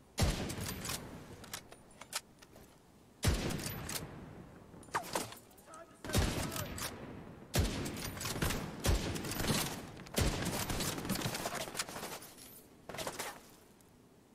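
Rifle shots fire in loud bursts, echoing outdoors.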